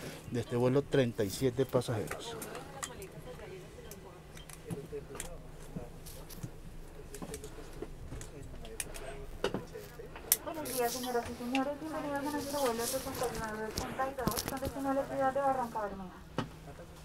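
Passengers murmur and talk quietly nearby.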